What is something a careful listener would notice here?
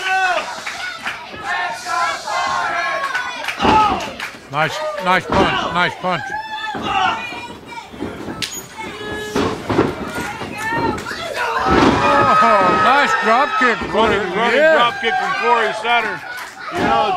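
A crowd cheers and shouts nearby.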